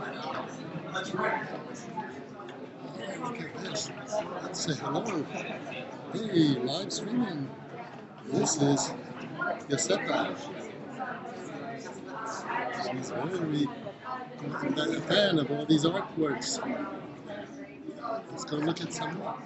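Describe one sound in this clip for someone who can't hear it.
A crowd of people chatters in the background of an echoing room.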